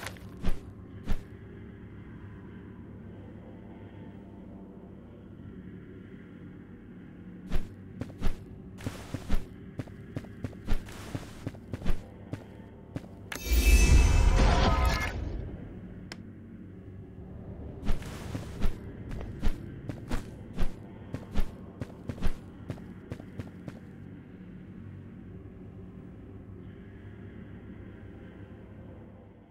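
Soft, dark game music plays steadily.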